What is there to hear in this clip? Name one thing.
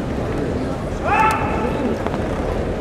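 A fencer lets out a loud, drawn-out shout in a large echoing hall.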